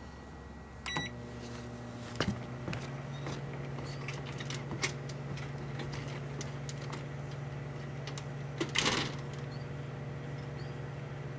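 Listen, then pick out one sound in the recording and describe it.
A microwave oven hums steadily.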